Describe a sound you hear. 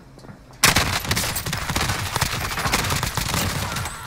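An explosion booms and fire crackles.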